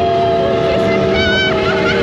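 A young woman laughs and squeals with excitement close by.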